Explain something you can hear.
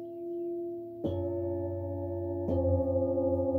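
A mallet strikes metal singing bowls, each hit blooming into a loud ringing tone.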